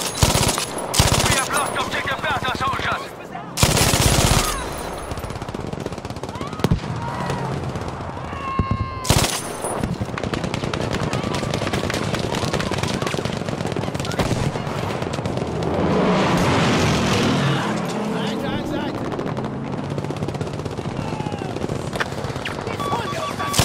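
A machine gun fires loud, rapid bursts close by.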